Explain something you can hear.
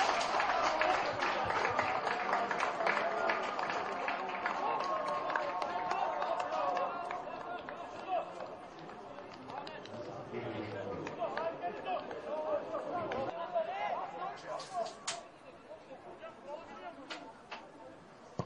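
Football players shout and call to each other outdoors.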